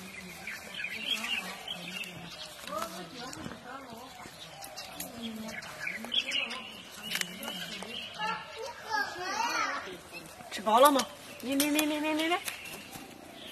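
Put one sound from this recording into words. A woman speaks gently and warmly nearby.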